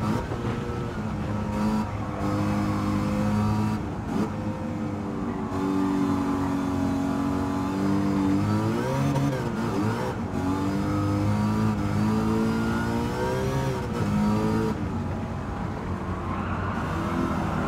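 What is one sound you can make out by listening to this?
A car engine revs up and down as gears shift.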